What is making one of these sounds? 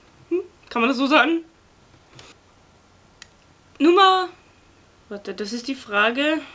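A young woman talks calmly and closely, in short bursts with pauses.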